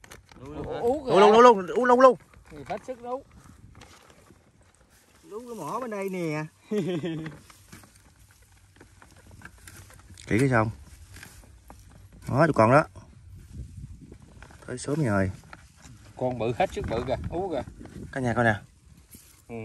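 A man talks casually up close, outdoors.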